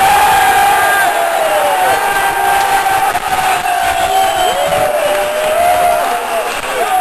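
A large crowd cheers loudly outdoors, close by.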